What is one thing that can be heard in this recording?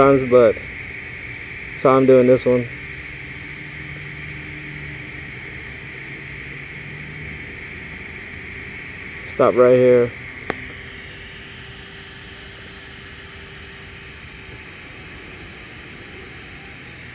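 A welding torch arc hisses steadily.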